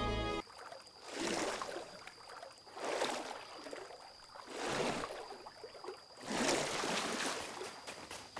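Water splashes in bursts as a swimmer strokes through it.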